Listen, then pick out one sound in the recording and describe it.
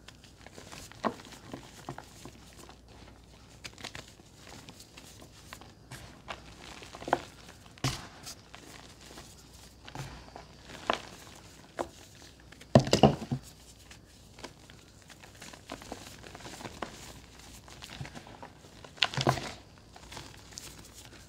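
Powder sifts and pours softly from hands.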